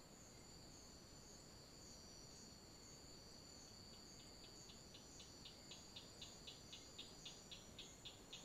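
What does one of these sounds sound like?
A small animal rustles softly through dry leaves.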